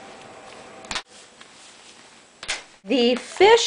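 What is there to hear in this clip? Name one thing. A rubber glove snaps onto a hand.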